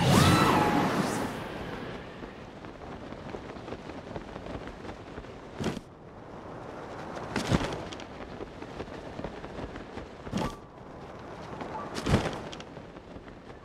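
Wind rushes steadily past while gliding through the air.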